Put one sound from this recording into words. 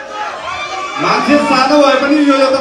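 A young man sings into a microphone over loudspeakers.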